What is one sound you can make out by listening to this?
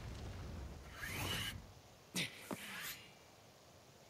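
Grappling cables whir and gas hisses as a figure swings through the air.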